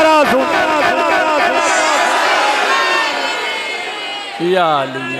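An elderly man chants loudly and with fervour into a microphone, heard through loudspeakers with reverberation.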